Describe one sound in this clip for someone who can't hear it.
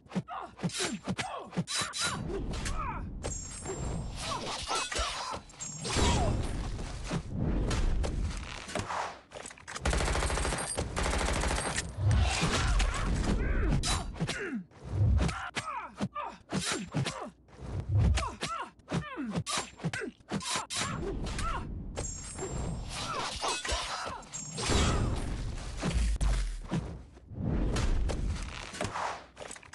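Blades slash and strike in quick bursts of hits.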